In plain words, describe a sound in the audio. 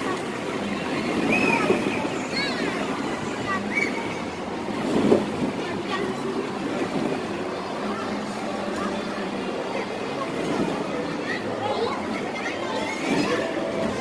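Plastic balls rustle and clatter as children wade through them.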